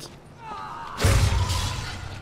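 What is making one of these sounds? A weapon strikes with a heavy thud.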